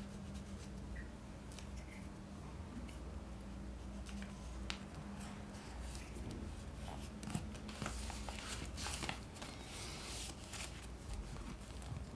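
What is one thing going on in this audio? A glue stick rubs against paper.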